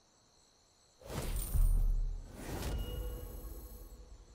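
A rifle fires loud shots that boom and echo.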